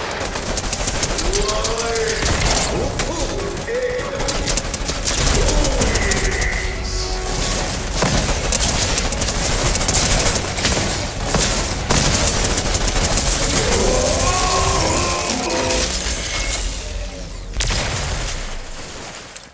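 Guns fire in rapid, loud bursts.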